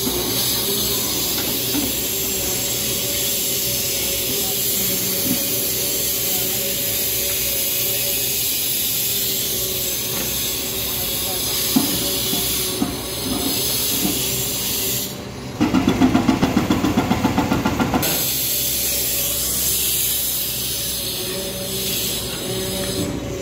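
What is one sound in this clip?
An excavator engine rumbles steadily in the distance.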